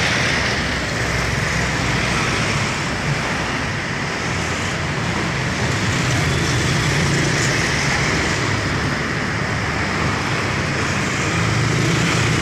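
Tyres hiss on a damp road.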